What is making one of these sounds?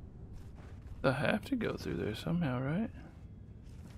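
A young man speaks briefly with animation, close to a headset microphone.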